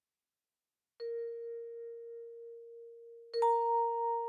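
An electric piano plays two long held notes, one after the other.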